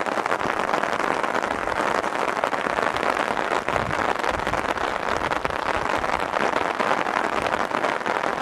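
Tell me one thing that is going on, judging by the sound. Wind blows steadily through the trees outdoors.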